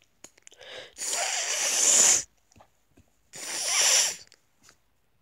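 A young man snorts and sputters loudly, close by.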